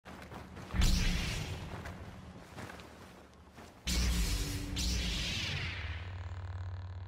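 A lightsaber hums with a low, steady buzz.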